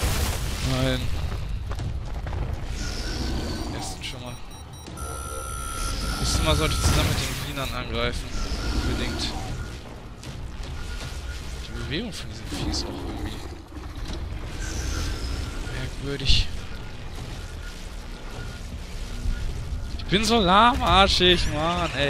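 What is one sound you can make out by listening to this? A large creature stomps with heavy, thudding footsteps.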